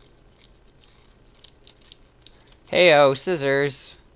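Scissors snip through a foil wrapper.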